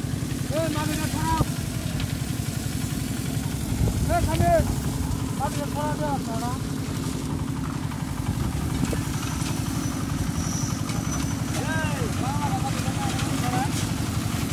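A man calls out loudly in short bursts.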